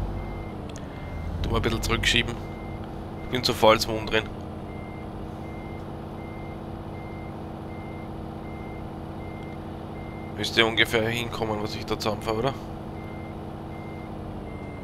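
A truck engine hums steadily inside the cab.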